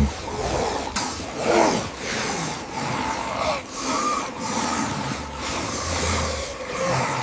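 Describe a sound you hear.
Chimpanzees scuffle and shuffle in dry dust.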